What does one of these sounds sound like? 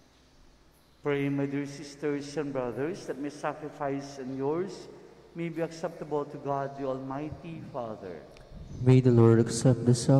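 A man sings a chant through a microphone in a reverberant hall.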